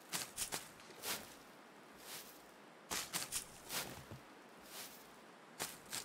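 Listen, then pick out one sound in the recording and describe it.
Dry reeds snap as they are picked.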